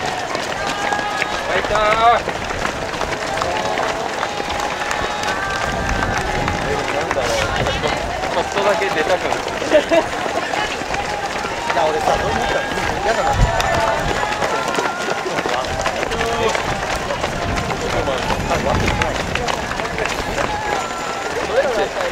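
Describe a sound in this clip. A crowd of spectators cheers and calls out nearby.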